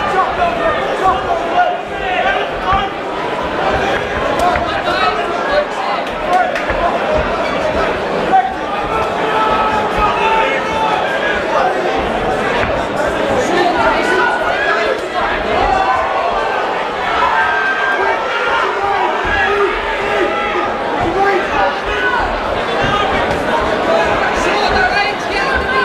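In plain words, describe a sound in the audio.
A crowd of people chatters and shouts in a large room.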